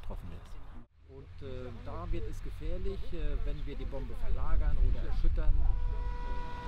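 A middle-aged man speaks calmly into a microphone outdoors.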